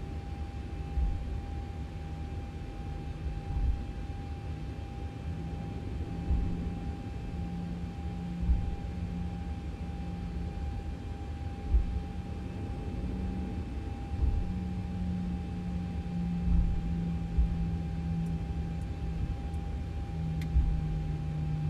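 Tyres thump over joints in the taxiway.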